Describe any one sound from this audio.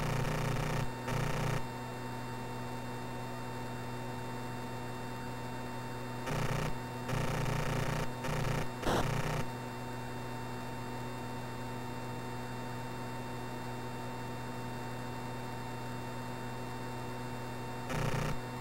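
A jet engine drones steadily in a retro video game.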